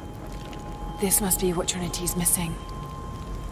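A young woman speaks softly and thoughtfully, close by.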